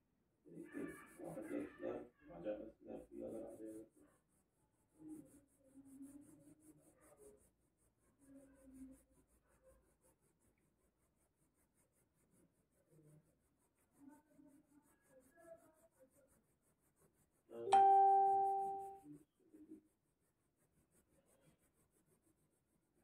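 A pencil scratches softly across paper in quick strokes.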